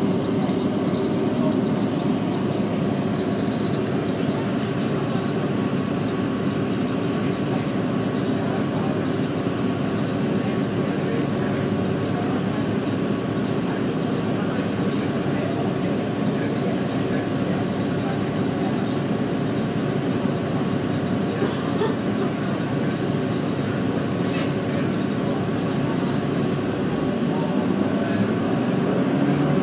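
A bus rolls slowly along a street.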